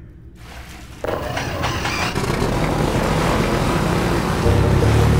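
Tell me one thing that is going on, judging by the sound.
A boat engine drones steadily while speeding over water in an echoing tunnel.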